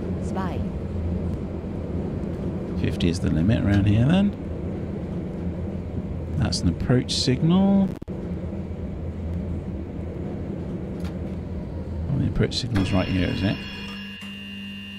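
A tram's electric motor hums steadily as it drives.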